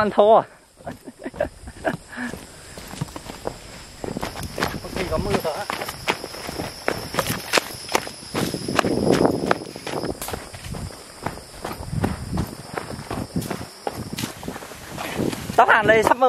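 Footsteps crunch on a dirt trail with dry leaves.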